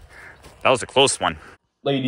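Footsteps crunch on frosty grass.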